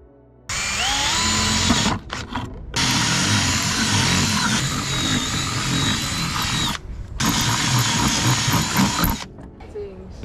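A cordless drill whirs in bursts as it bores through metal.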